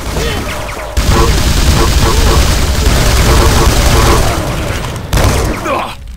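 A rapid-fire energy gun shoots in quick bursts.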